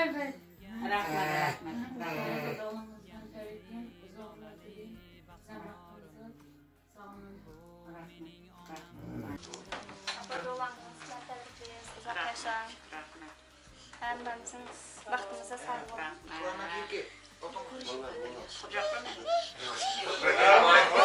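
Men and women talk and chat nearby.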